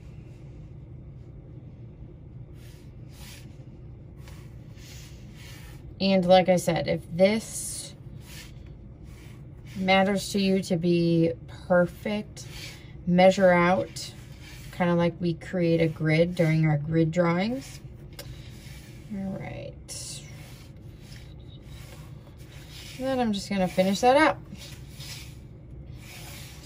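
A pencil scratches lightly across paper.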